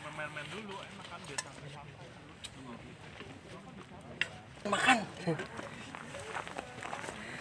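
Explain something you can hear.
A young man talks casually close by, outdoors.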